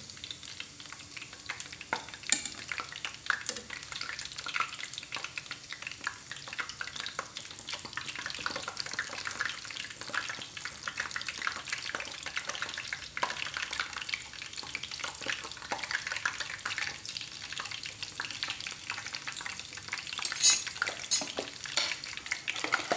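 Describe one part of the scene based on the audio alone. Oil sizzles and crackles steadily in a frying pan.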